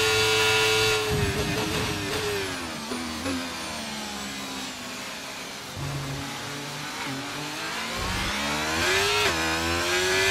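A racing car engine screams at high revs, dropping in pitch as the car brakes into a corner and rising again as it accelerates away.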